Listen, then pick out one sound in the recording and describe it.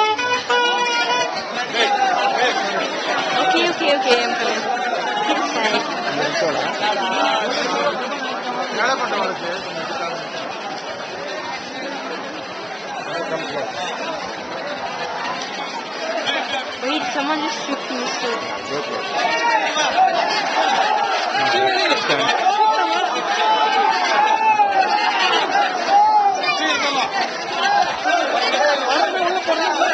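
A large crowd of men chants and calls out loudly outdoors.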